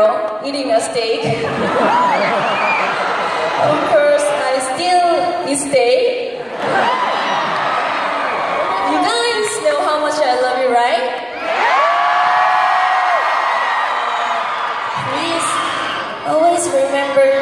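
A crowd screams and cheers.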